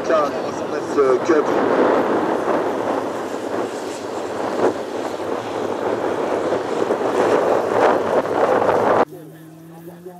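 A rally car engine roars loudly as the car speeds past.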